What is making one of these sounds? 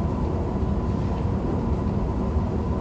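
A man speaks to an audience in a large room, heard from a distance.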